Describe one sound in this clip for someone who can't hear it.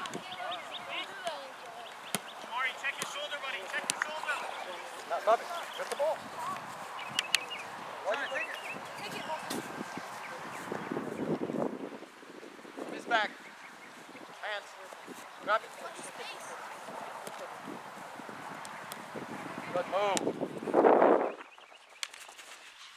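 A foot kicks a soccer ball.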